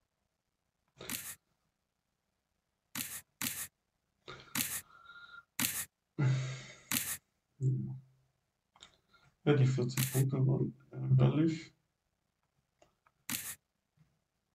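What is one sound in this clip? Short card-flip sound effects click now and then.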